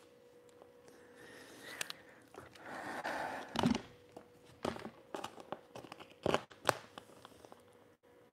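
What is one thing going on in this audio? Paper rustles and crinkles as it is folded over a box.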